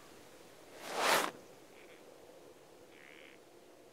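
A boot steps onto soft dirt.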